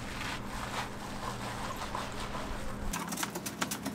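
Gloved hands squish and rustle through shredded cabbage.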